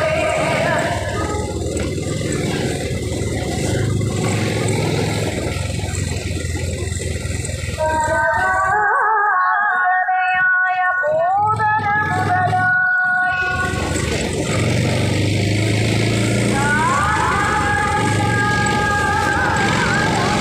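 Tyres rumble over a dirt road.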